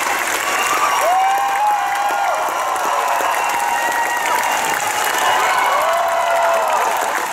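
Audience members whoop and cheer.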